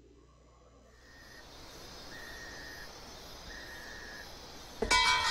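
A ringing tone purrs steadily through a telephone handset, repeating in short bursts.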